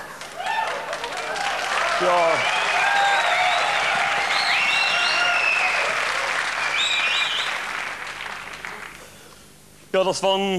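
An audience laughs and cheers loudly, then fades.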